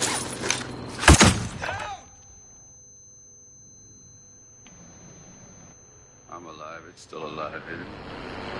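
A stun grenade bursts with a sharp, loud bang, followed by a high ringing.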